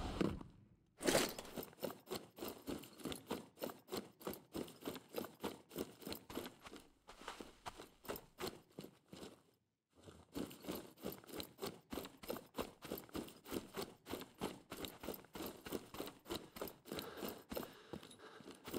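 Quick footsteps crunch over gravel and grass.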